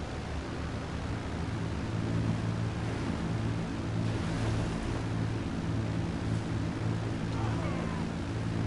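A jet engine roars steadily as a plane speeds down a runway.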